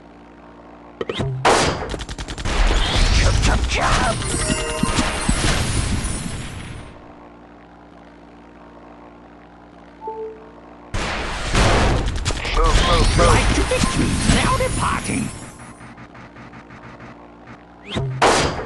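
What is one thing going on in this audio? Loud explosions and blasts boom in rapid bursts.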